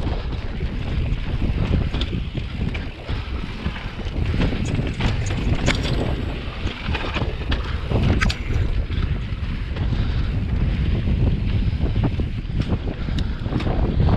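Wind rumbles and buffets loudly against the microphone.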